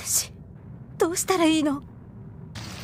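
A young girl speaks softly and tearfully.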